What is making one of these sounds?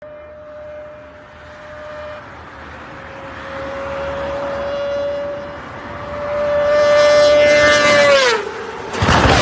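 A car engine revs loudly and climbs in pitch, then drops off.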